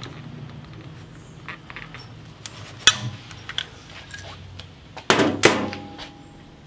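Metal parts click and knock.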